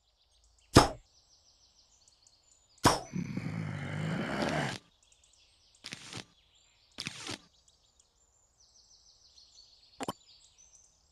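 Short game sound effects chime and pop.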